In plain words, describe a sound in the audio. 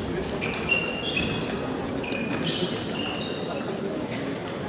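Shoes squeak on the floor.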